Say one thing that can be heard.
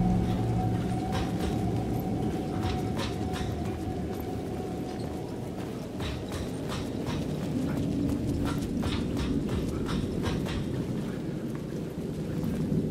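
Footsteps tread slowly across a hard floor indoors.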